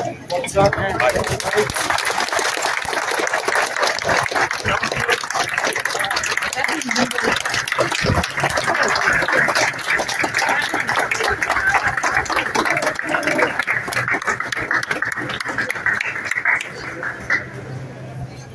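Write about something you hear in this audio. A large crowd claps and applauds loudly.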